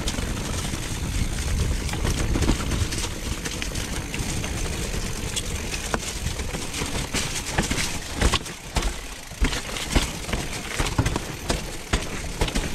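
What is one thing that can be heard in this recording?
Wind rushes loudly past a fast-moving bicycle rider.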